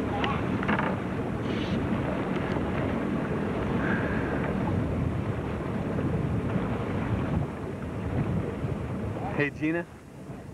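Water churns and splashes loudly.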